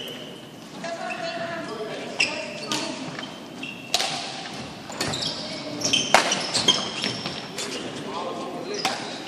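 Rackets smack shuttlecocks in a large echoing hall.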